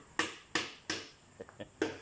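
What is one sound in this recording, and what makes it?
A hammer knocks on wood.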